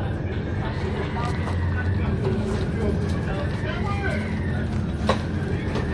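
A ferry's engines drone with a low rumble.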